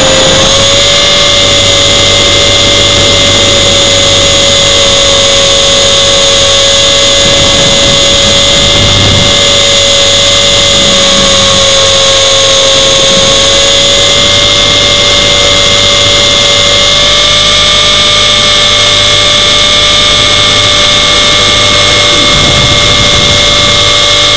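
Small electric motors whine steadily at a high pitch, close by.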